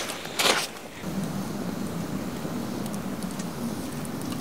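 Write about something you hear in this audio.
A campfire crackles and hisses softly.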